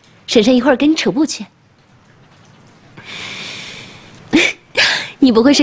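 A young woman speaks cheerfully and close by.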